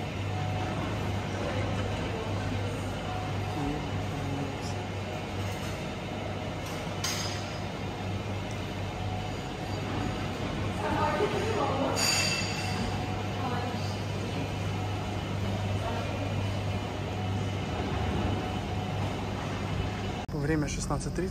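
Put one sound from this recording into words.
A refrigerated display case hums steadily.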